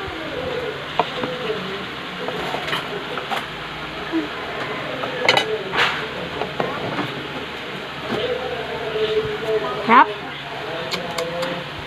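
A plastic spoon clicks and scrapes in a plastic bowl.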